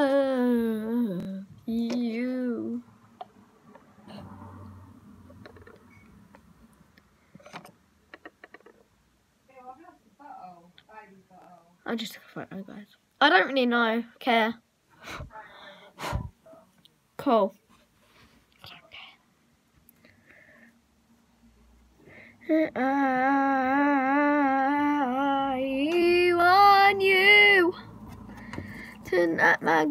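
A young girl sings in a long, steady, wavering tone close by.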